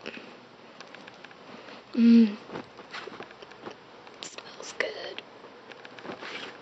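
Fabric rustles softly as clothes are handled.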